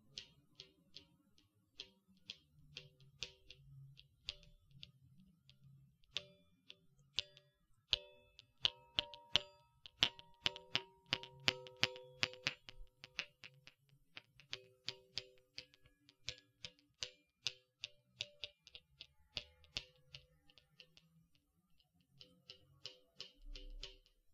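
Metal balls click and chime together close to a microphone.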